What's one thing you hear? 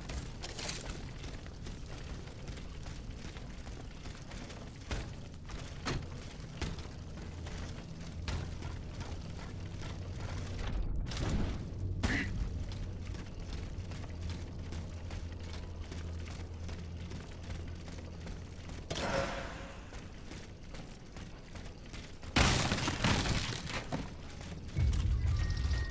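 Footsteps run over stone and wooden boards.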